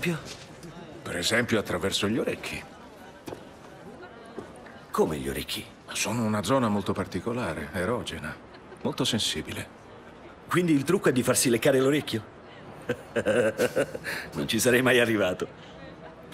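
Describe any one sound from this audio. A middle-aged man speaks calmly.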